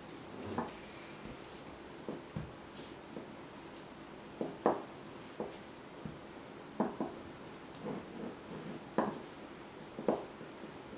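A rolling pin rolls over soft dough on a table with soft bumps and knocks.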